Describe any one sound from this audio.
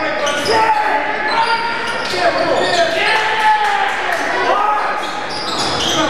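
A basketball bounces on a hard wooden court.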